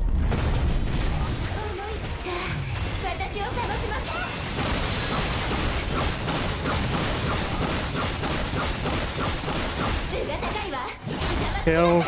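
Rapid sword slashes and blasts crash in a loud, busy battle.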